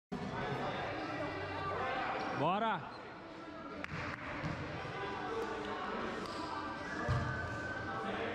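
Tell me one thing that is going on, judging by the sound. Several young men and women talk and call out in a large echoing hall.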